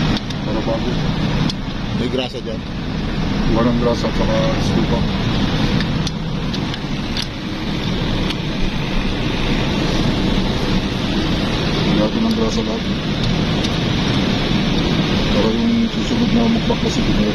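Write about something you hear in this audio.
Metal tools clink and scrape against a metal part.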